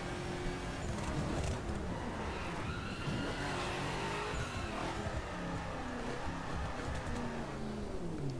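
A twin-turbo V8 supercar engine drops in pitch as the car slows down.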